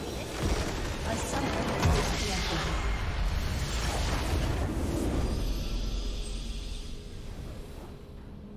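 A huge magical blast roars and rumbles, then slowly fades.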